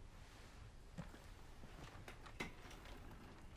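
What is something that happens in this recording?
A chair creaks as a man shifts in it.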